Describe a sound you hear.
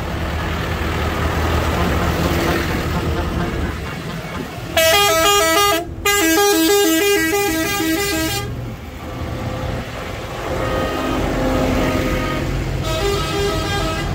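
Tractor engines rumble as they drive slowly past.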